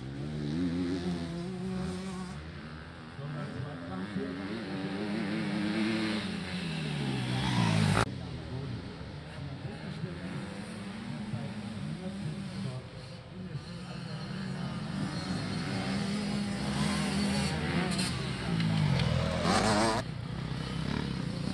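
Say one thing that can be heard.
Motocross bike engines whine and rev up and down close by.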